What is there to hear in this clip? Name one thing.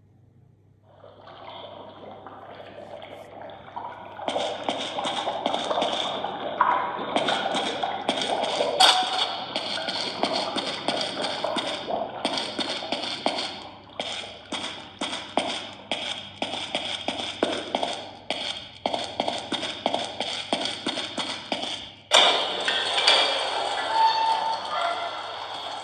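Game sound effects play from a small tablet speaker.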